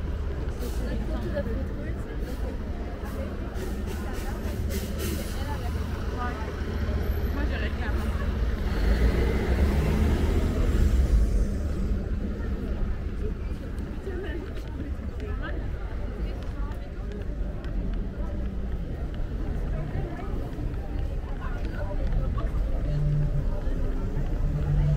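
Footsteps of many people scuff on pavement outdoors.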